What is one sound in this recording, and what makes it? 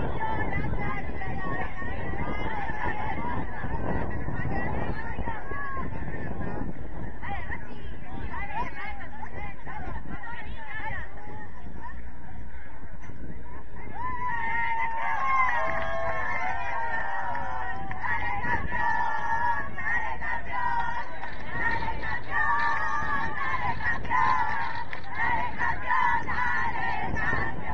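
Men shout and call to each other across an open field outdoors.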